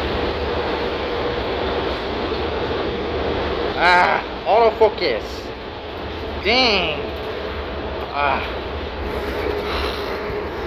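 Road noise hisses steadily from inside a moving bus.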